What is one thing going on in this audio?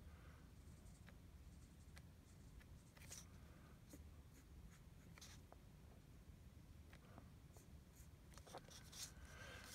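Paper rustles as a sheet is shifted.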